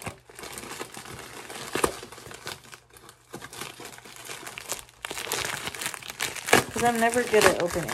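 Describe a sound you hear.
Scissors snip through plastic.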